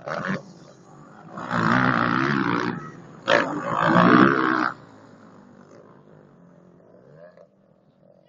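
A motorbike engine revs nearby.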